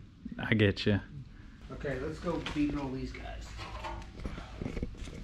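A man talks casually and close by.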